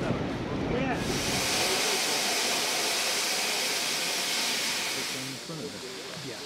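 Steam hisses loudly from a locomotive.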